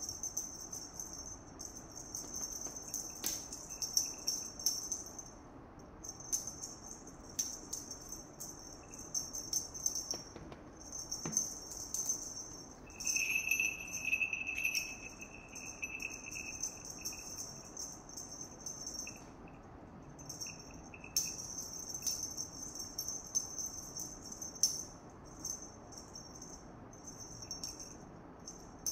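A small hard toy ball on a string taps and bounces on a tile floor.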